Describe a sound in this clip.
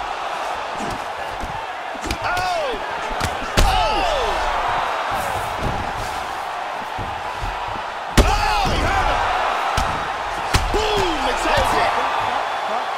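A large crowd roars and cheers.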